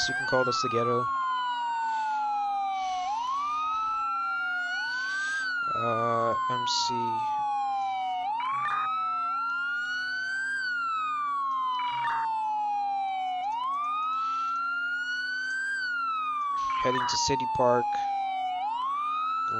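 A police siren wails steadily, rising and falling.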